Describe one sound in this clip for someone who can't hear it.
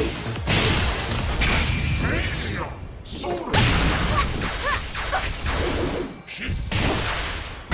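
Heavy blows land with sharp thuds.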